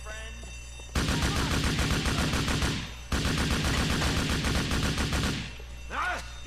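Rapid automatic gunfire rattles in long bursts.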